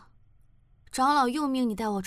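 A young woman speaks calmly and wearily.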